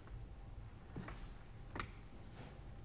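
Bare feet thump on a wooden floor.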